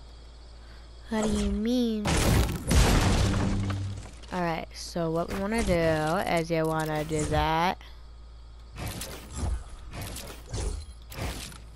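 A pickaxe strikes a wall.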